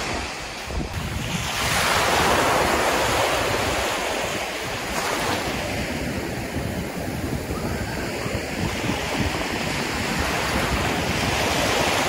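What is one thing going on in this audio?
Small waves wash up onto sand and hiss as they pull back.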